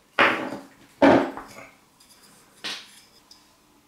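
A wooden handle knocks onto a table.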